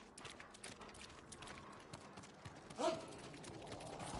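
Footsteps patter over rustling paper.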